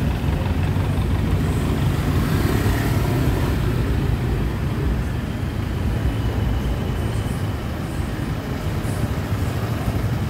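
A motorbike engine passes close by.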